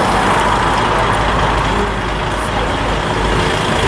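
Elderly men talk outdoors nearby.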